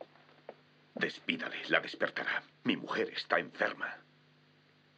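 A man speaks sharply and angrily up close.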